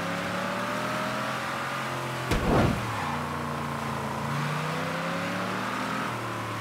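A car engine roars steadily as the car speeds along.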